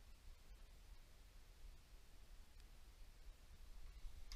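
A torque wrench clicks as a bolt is tightened.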